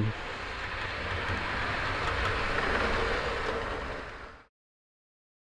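A model train rattles and hums along its track.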